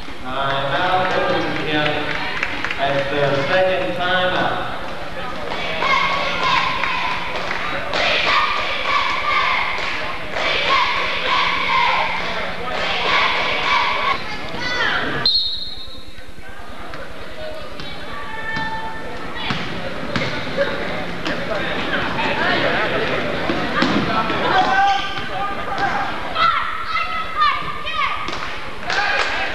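A crowd cheers and chants in a large echoing gym.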